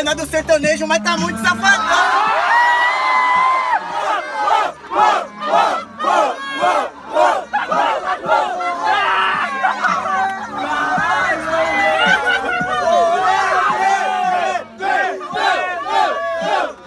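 A young man raps rhythmically into a microphone close by.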